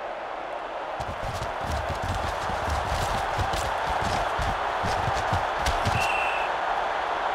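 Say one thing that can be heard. Football players collide and tackle with heavy thuds.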